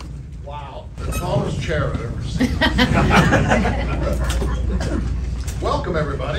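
An elderly man speaks with animation into a microphone, amplified through loudspeakers in a large hall.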